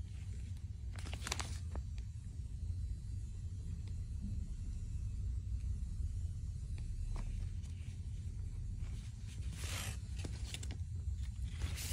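A plastic packet crinkles as hands handle it.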